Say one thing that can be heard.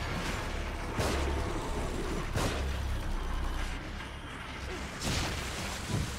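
Gunshots ring out from a game.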